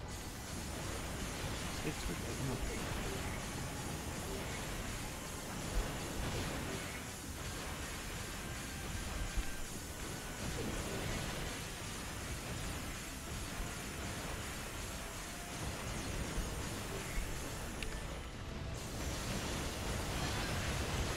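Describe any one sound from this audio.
Explosions and laser blasts boom and crackle without a break.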